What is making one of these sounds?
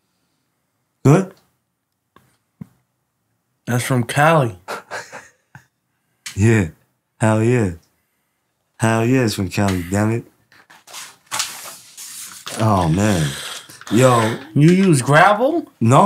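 A man speaks animatedly into a microphone up close.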